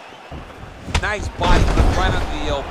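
A heavy punch lands with a thud.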